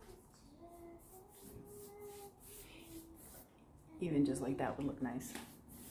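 A paintbrush swishes across a wooden surface.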